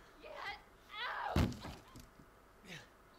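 A young woman shouts in distress.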